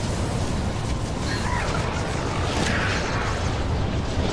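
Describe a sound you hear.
Lightning crackles and buzzes loudly.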